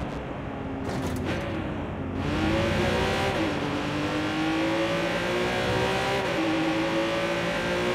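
A sports car engine revs loudly and accelerates, rising and falling in pitch as it shifts gears.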